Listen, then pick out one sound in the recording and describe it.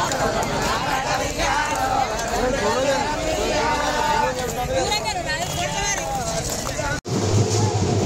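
Women clap their hands in rhythm.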